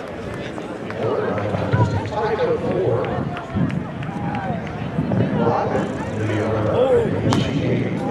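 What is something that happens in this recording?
A crowd cheers after a jump.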